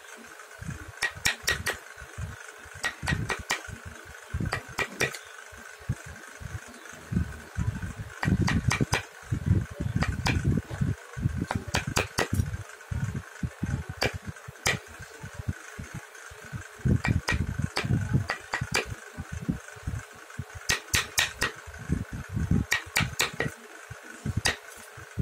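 A chisel taps and scrapes at hard wood in short bursts, close by.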